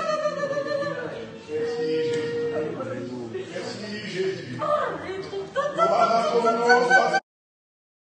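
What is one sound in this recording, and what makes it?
A man speaks with animation into a microphone, his voice echoing in a large room.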